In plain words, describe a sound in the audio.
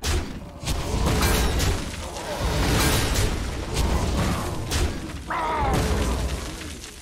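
Game sound effects crash and clang as cards attack each other.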